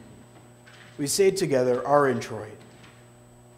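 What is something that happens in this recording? A man chants aloud in an echoing hall.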